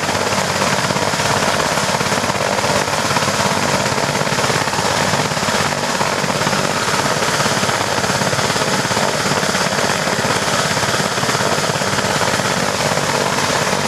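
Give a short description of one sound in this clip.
A helicopter's turbine engine whines loudly and steadily close by.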